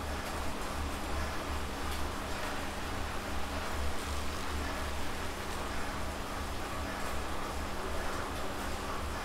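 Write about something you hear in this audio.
A stationary bike trainer whirs steadily with a rhythmic low pulsing.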